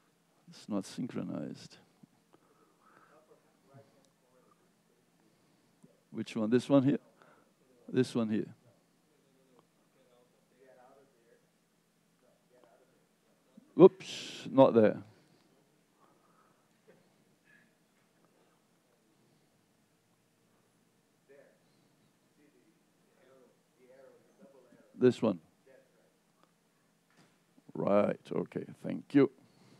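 A man speaks in short bursts through a microphone.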